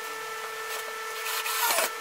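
A cordless screwdriver whirs, driving in a screw.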